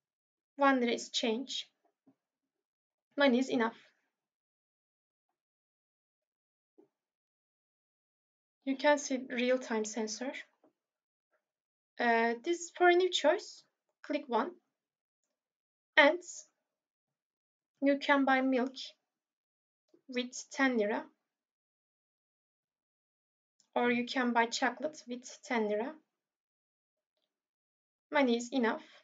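A young woman speaks calmly in short phrases, close to a microphone.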